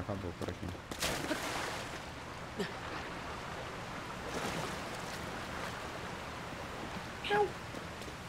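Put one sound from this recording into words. Water splashes and rushes steadily.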